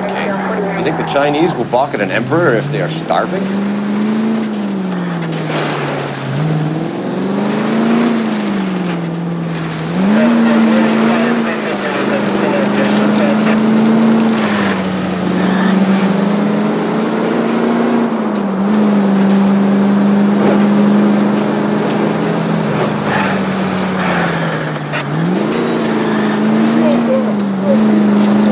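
A car engine hums and revs up and down as it drives.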